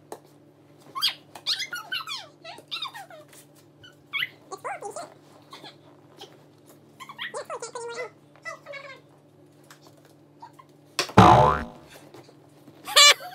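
A small boy talks and squeals nearby.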